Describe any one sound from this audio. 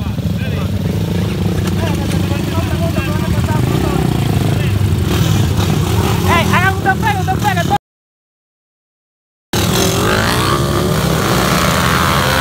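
Motorcycle engines idle and rumble close by.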